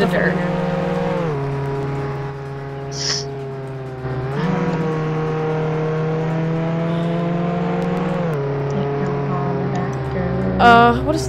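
A car engine hums steadily, its pitch shifting up and down as it changes gear.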